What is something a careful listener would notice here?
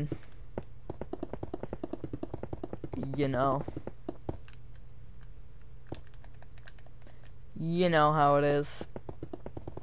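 Blocks are placed with rapid, soft, regular clicks.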